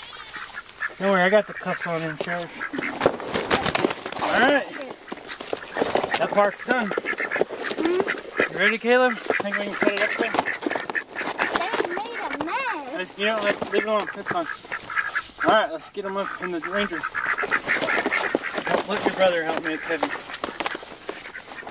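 Ducks quack loudly and repeatedly close by.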